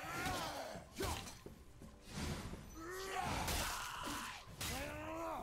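Heavy blows land in a close fight.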